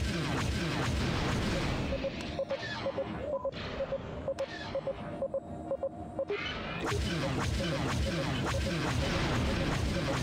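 A spaceship engine hums with a low, steady roar.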